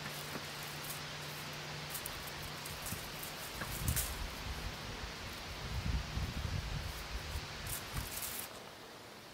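Dry tomato vines rustle as fruit is picked.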